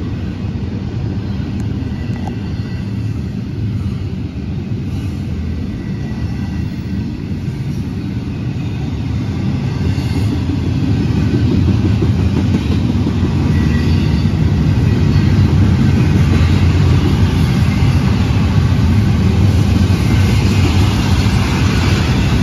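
A freight train rumbles steadily past nearby, growing louder.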